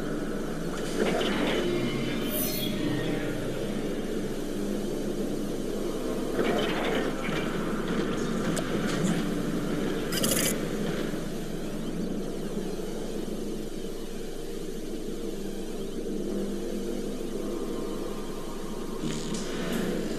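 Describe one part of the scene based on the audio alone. Laser beams zap in short bursts.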